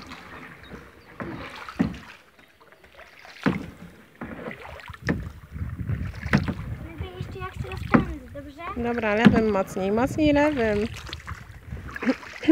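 A paddle splashes and dips into the water in a steady rhythm.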